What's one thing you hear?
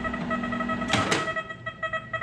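A microwave oven door clicks open.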